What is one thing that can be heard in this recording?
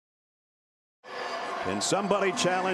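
A stadium crowd murmurs and cheers in the background.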